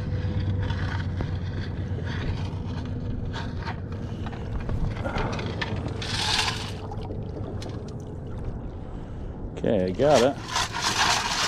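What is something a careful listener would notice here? Water swishes and splashes around wading legs in a shallow stream.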